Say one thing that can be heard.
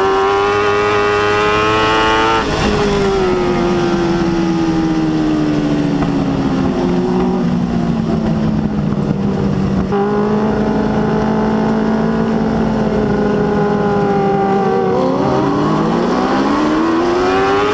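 A race car engine roars loudly, its pitch rising and falling as the driver lifts off and accelerates.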